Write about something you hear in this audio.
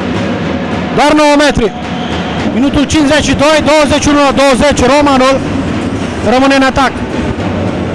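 Spectators chant loudly together.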